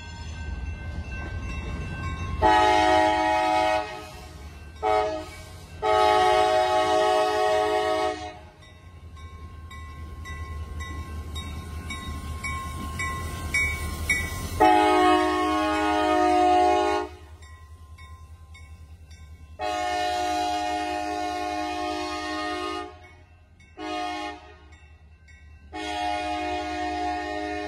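A diesel locomotive rumbles past on the tracks.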